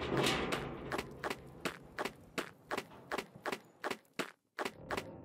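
Small footsteps tap on a stone floor.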